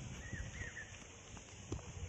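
Footsteps swish softly through grass.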